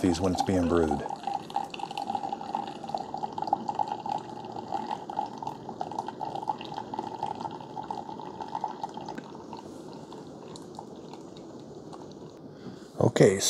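A coffee maker hums steadily as it brews.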